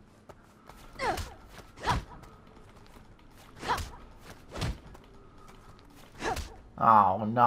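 Heavy blows thud and smack one after another.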